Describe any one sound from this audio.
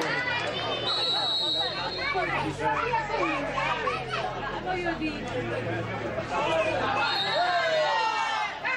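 A referee's whistle blows in short blasts.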